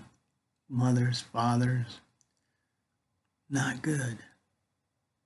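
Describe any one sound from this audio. An older man speaks calmly and close to a microphone, in short bursts.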